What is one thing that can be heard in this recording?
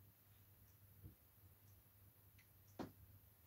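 A small object knocks on a tabletop.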